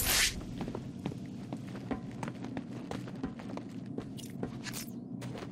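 Heavy footsteps clank on a metal grate.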